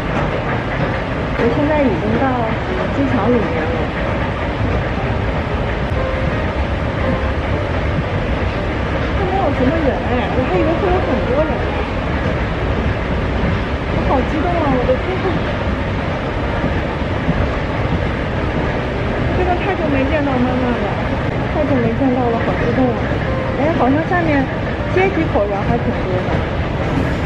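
A young woman talks with excitement close to a microphone.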